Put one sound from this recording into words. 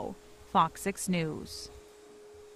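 A woman speaks briefly and with animation, close by.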